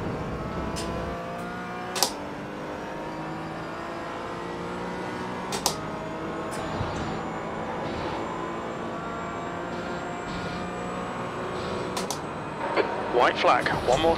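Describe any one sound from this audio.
A racing car engine revs up and down through the gears.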